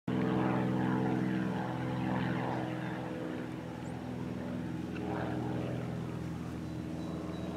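A small propeller plane drones overhead, its engine humming steadily.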